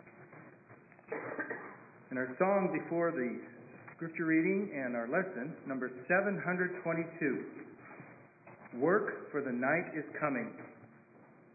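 An elderly man speaks calmly through a microphone in a large echoing room.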